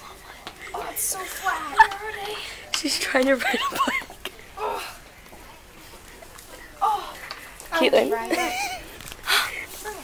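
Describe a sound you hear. A young girl talks and laughs excitedly close by.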